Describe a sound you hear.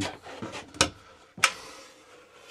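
A cupboard flap clicks and knocks open.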